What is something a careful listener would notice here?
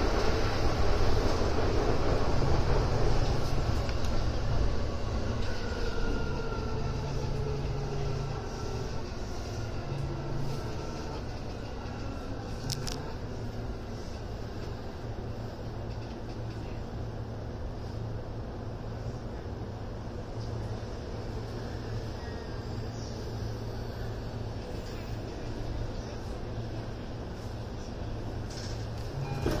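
An electric commuter train rumbles along the rails.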